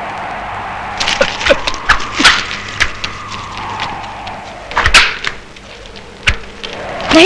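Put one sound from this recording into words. Hooves clatter as a herd of donkeys is driven along.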